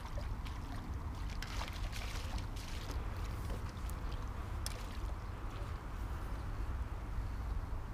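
A fish splashes at the surface of the water.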